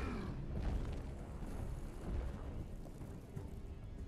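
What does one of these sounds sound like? Large wings beat heavily through the air.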